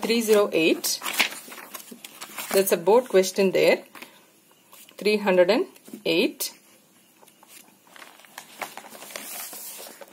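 Book pages rustle as they are flipped by hand.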